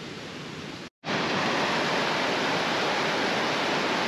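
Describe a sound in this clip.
A mountain stream rushes loudly over rocks.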